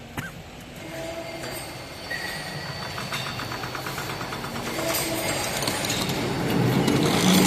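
A barbed wire making machine starts up and runs with whirring gears.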